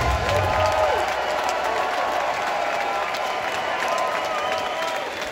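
Electric guitars play distorted chords.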